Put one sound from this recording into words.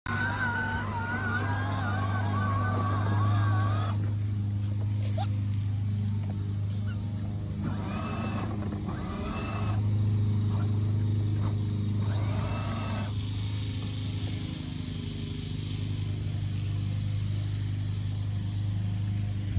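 A toy car's electric motor whirs steadily.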